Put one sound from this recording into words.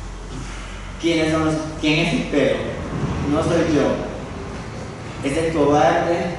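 A young woman speaks calmly into a microphone in an echoing room.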